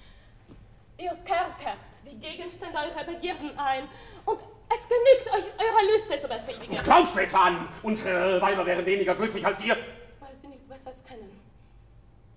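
A young woman sings forcefully.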